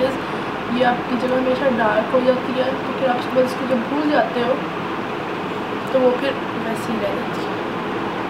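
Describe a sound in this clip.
A young woman speaks calmly close by.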